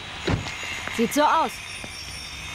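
A woman speaks close by.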